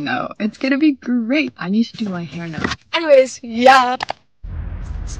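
A young woman talks excitedly and laughs close by.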